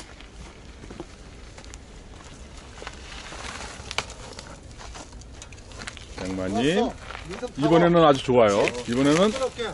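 Bicycle tyres crunch and rattle over rocks and dirt.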